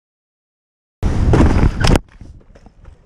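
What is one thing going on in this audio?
A rider crashes to the ground with a heavy thump and scrape.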